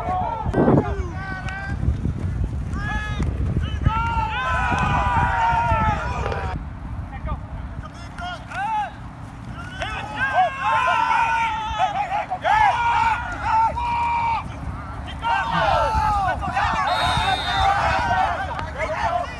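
Men shout and call out loudly outdoors.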